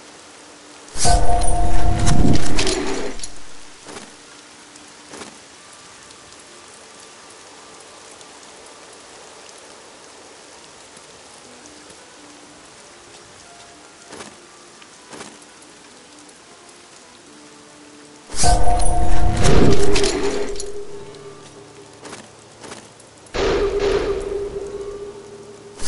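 Loud magical whooshing and chiming effects burst out in short bursts.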